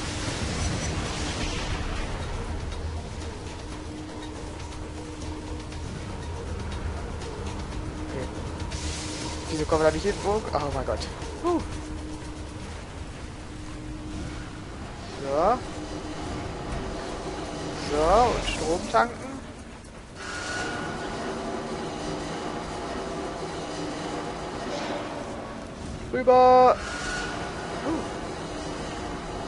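A low rumbling hum drones throughout.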